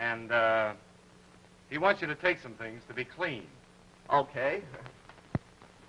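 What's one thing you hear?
Two men talk in turns, heard through an old film soundtrack.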